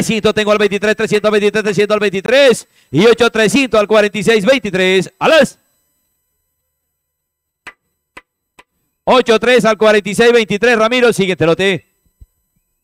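A man chants rapidly over a loudspeaker.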